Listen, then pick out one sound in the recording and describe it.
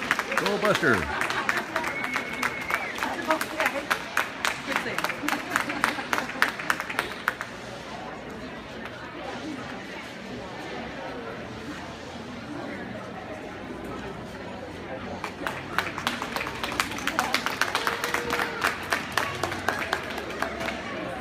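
Spectators clap loudly.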